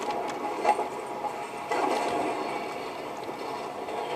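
A loud explosion booms from a video game.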